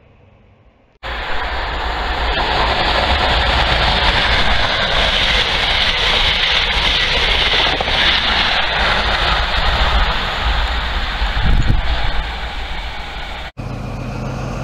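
A train rushes past at speed with a loud roar.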